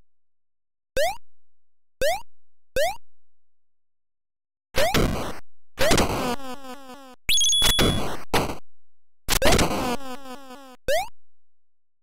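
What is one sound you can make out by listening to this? Short rising electronic chirps sound as a game character jumps.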